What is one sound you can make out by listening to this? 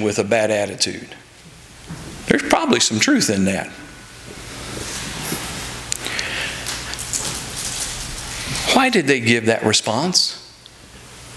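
An elderly man speaks calmly into a microphone in a room with a slight echo.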